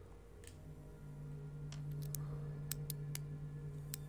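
A metal pick scrapes and clicks inside a door lock.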